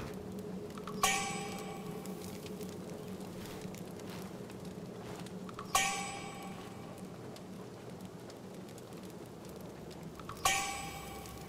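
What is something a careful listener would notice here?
A bright chime rings out and rings on briefly.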